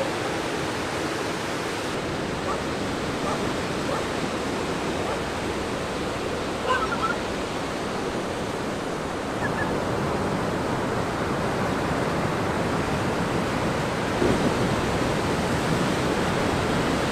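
Ocean waves crash and roll steadily onto the shore.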